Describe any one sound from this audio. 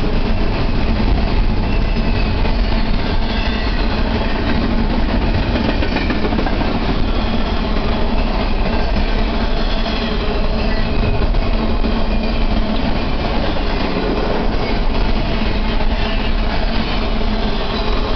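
A double-stack container freight train rolls past close by with a steady rumble and clatter of steel wheels on rails.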